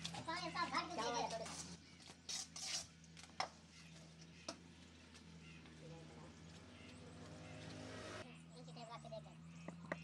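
A trowel scrapes and slaps wet mortar.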